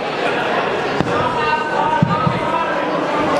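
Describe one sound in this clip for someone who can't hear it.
Gloved punches thud against a boxer.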